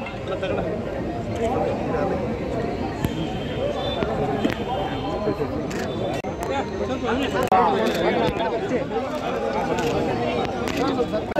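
A crowd of men and women talk over one another outdoors.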